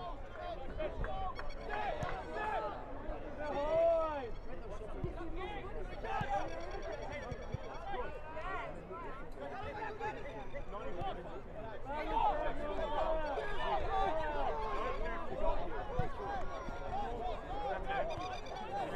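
Young men shout and call to each other across an open pitch.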